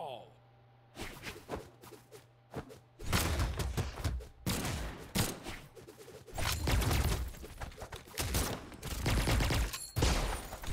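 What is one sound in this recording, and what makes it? Punches and hits land with sharp thuds and whooshes.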